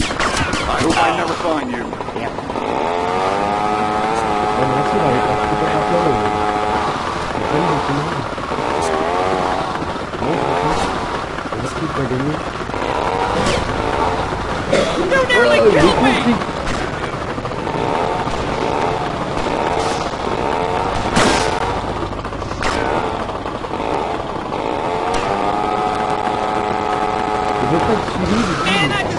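A scooter engine buzzes and revs steadily.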